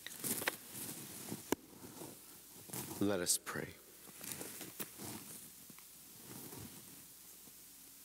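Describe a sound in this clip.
A man speaks quietly into a microphone.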